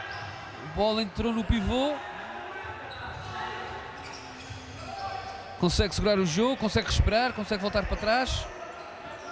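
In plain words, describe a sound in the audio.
A ball thumps as players kick it, echoing in a large indoor hall.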